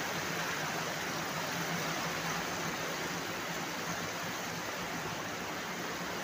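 Water gushes and churns loudly in a steady roar.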